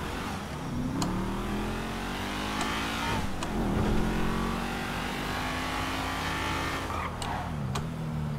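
A sports car engine roars steadily, rising and falling in pitch as it shifts gears.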